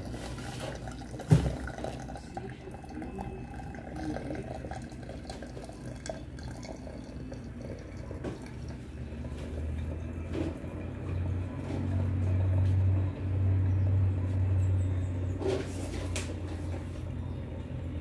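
Water pours and splashes into a pot.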